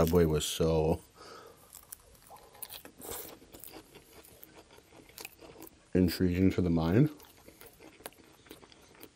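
A man chews food wetly close to a microphone.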